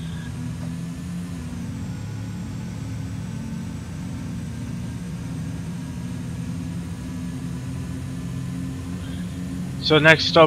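A train engine hums steadily as the train runs along the track.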